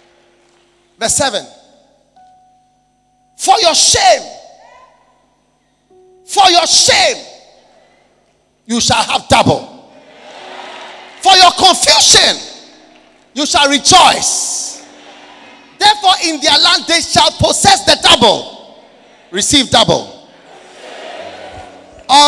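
A man preaches loudly through a microphone, in short shouted bursts with a long echo.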